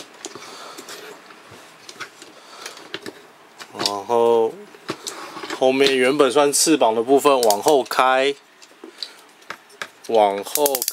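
Plastic parts click and rattle as they are handled up close.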